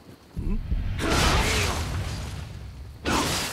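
Metal blades clash.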